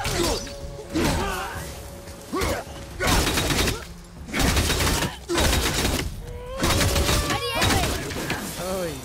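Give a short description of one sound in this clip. Heavy metal blows clash and thud in a fight.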